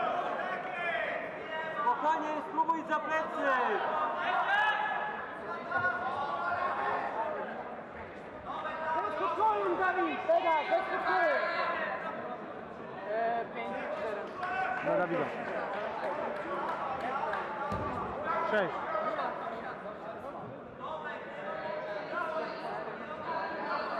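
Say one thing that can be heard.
A crowd of spectators talks and calls out in the background.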